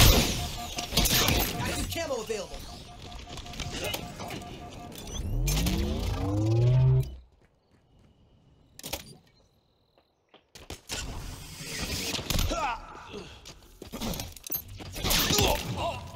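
Weapons fire in rapid bursts.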